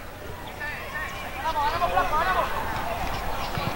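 A small crowd cheers and calls out in the distance.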